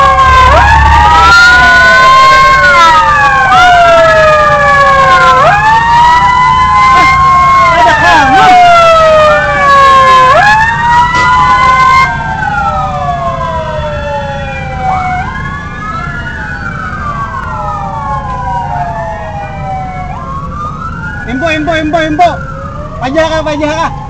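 A fire truck siren wails loudly nearby, rising and falling over and over.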